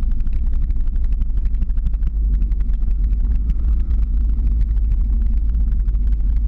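Wind rumbles heavily and steadily against a microphone outdoors.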